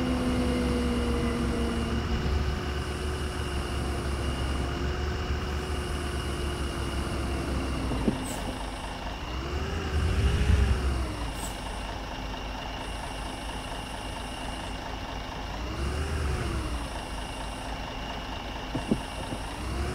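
A bus engine hums steadily.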